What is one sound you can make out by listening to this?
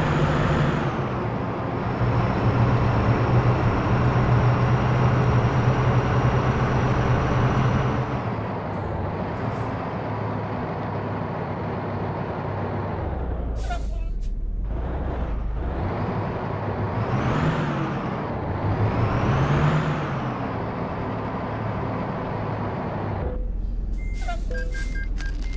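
A bus engine rumbles steadily and rises and falls with speed.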